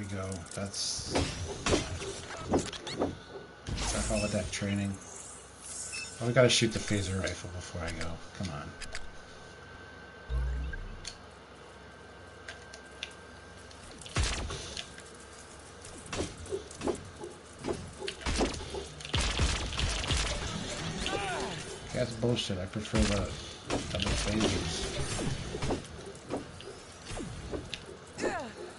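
Laser blasters fire in quick bursts of game sound effects.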